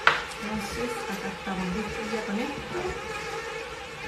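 A knife scrapes against a vegetable on a board.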